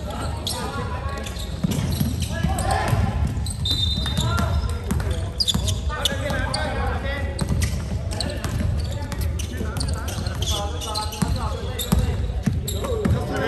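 Young men call out to each other across an echoing hall.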